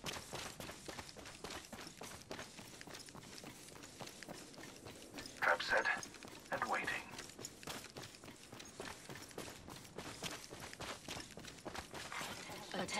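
Quick footsteps run on a dirt path.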